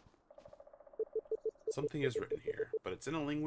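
Short electronic blips repeat quickly.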